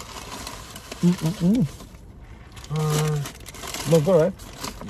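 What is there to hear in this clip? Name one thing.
A middle-aged man hums and murmurs with pleasure close by.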